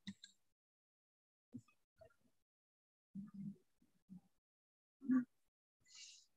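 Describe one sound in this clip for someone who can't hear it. A young woman speaks calmly in short phrases, heard through an online call.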